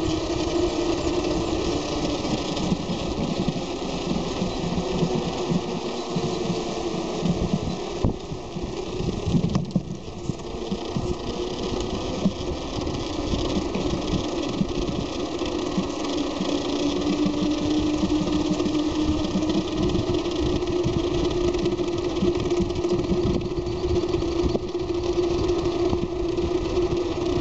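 Wind rushes and buffets loudly, as if moving fast outdoors.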